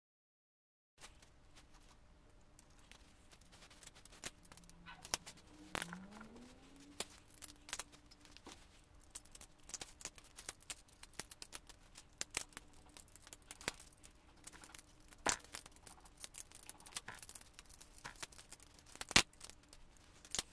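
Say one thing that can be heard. Plastic toy bricks click and clatter as hands handle them.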